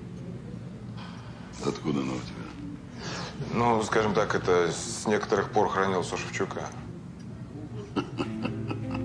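An older man speaks in a low voice.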